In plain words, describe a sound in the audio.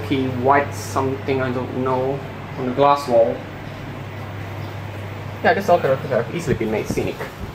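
An elevator motor hums steadily.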